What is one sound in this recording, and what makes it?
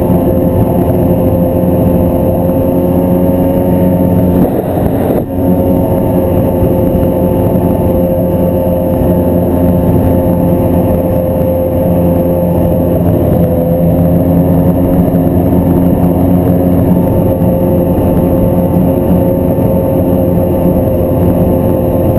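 A snowmobile engine drones loudly and steadily up close.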